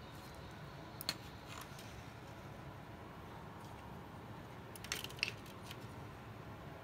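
Plastic figures click and clatter as hands handle them.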